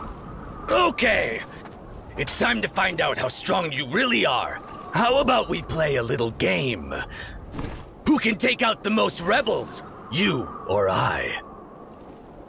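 A man speaks loudly and boastfully, close by.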